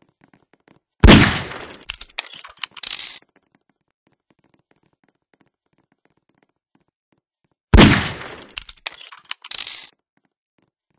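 A gun fires with a loud bang that rings out and fades.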